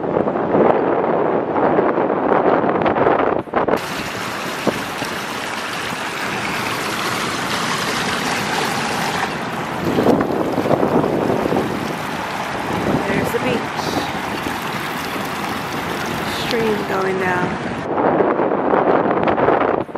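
Ocean surf roars steadily in the distance.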